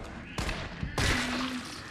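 A gun fires a loud shot.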